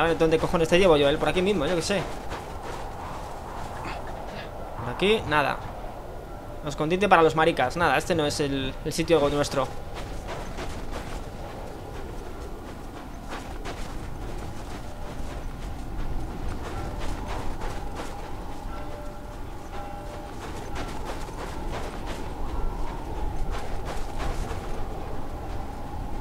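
Footsteps crunch in deep snow.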